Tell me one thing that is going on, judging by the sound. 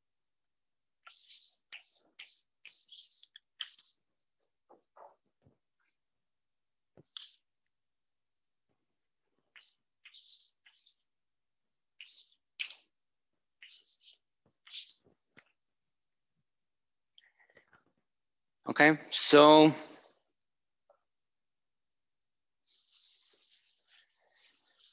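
Chalk scratches and taps on a blackboard in short bursts.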